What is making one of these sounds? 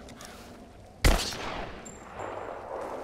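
A pistol fires a single loud shot with a short echo.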